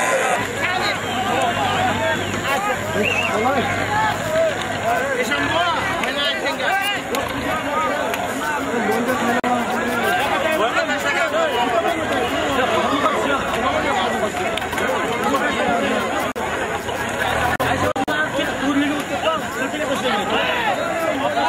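A large crowd of men shouts and talks loudly outdoors.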